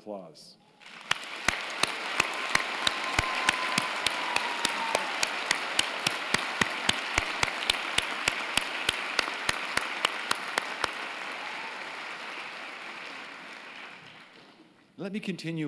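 A large crowd applauds loudly and then fades.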